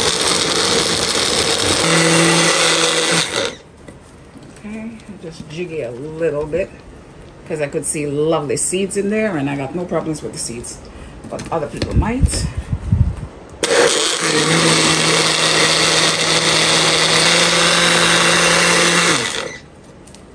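A blender whirs loudly as it purees.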